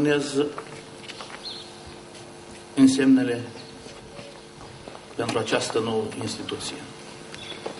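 A man speaks through a microphone outdoors in short bursts.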